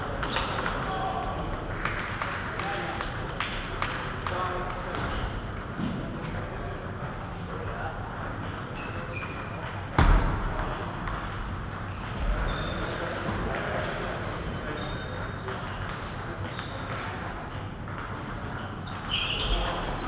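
A crowd of people murmurs and chats in the background.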